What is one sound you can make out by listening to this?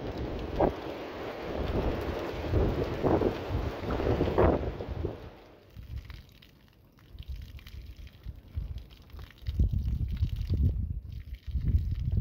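Water pours from a jug onto soil.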